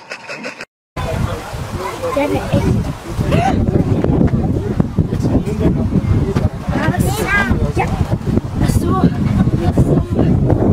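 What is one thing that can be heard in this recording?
Children laugh and shriek outdoors.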